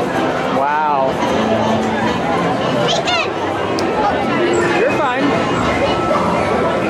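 A crowd of people chatters and calls out all around, outdoors.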